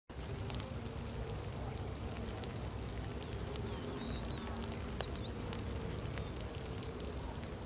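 A wood fire crackles and pops softly.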